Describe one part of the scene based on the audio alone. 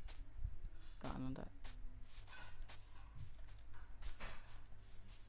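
Footsteps crunch steadily on grass.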